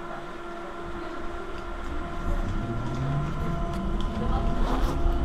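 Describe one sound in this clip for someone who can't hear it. A tram rumbles and hums as it rolls along the rails.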